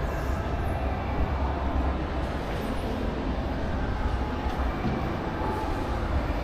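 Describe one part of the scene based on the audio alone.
An escalator hums and rumbles steadily in a large echoing hall.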